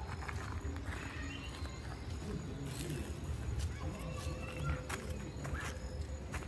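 Footsteps scuff on a paved path.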